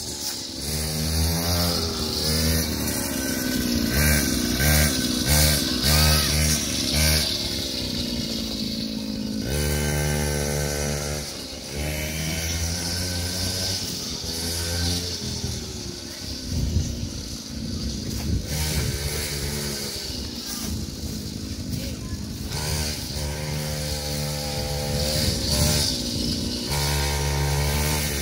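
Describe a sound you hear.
A small electric toy quad bike whines as it drives along, its pitch rising and falling.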